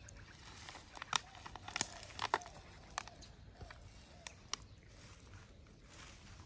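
Plant stems snap and rustle as they are pulled.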